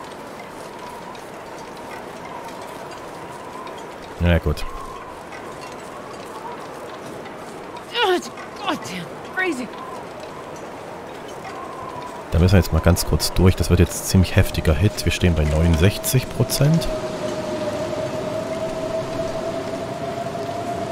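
Wind howls steadily through a snowstorm.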